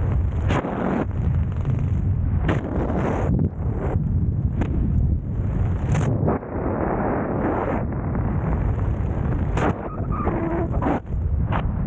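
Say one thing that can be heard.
Wind buffets the microphone during a descent under an open parachute.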